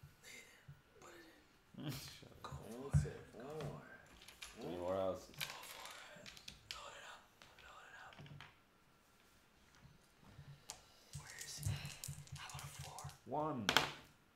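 Several young men and a woman talk and laugh around a table, close by.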